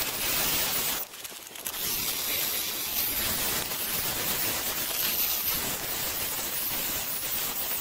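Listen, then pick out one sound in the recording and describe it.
A core drill grinds loudly.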